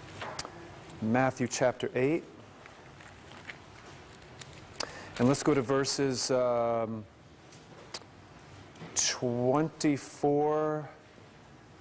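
A man reads aloud slowly through a microphone.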